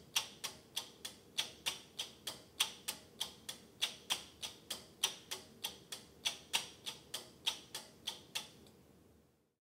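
Relays click rapidly and steadily.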